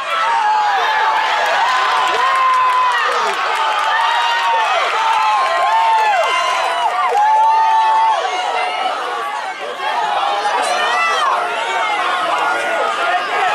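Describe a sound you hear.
A crowd of spectators shouts and cheers close by.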